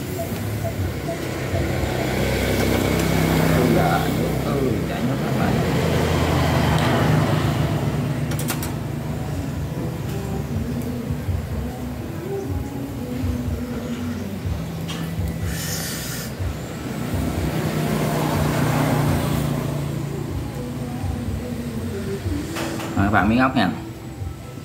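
Metal tongs clink against a grill.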